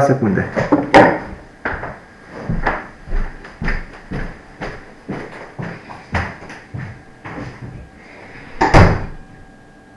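Footsteps thud across a hard floor.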